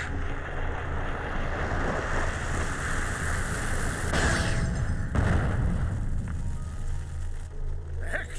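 A roaring burst of fire swells and then cuts off.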